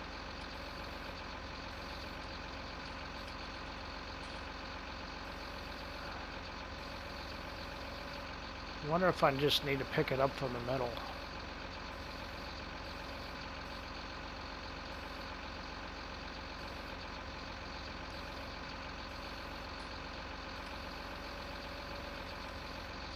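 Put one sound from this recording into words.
A hydraulic crane arm whirs as it swings a log.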